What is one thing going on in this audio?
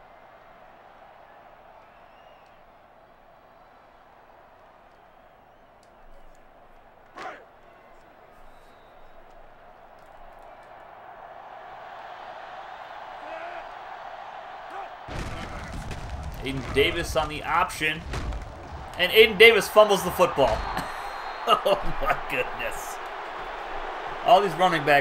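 A large crowd cheers in a stadium, swelling louder.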